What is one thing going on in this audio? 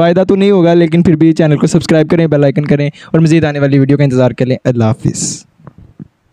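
A young man sings into a microphone close by.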